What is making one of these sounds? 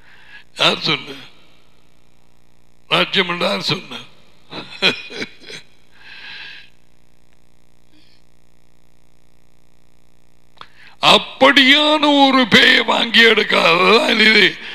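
A middle-aged man speaks with animation into a close headset microphone, pausing between phrases.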